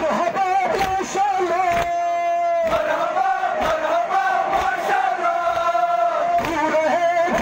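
A large crowd of men chants loudly and steadily in unison outdoors.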